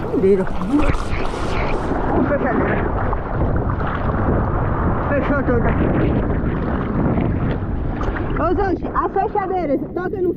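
Hands paddle and splash through water.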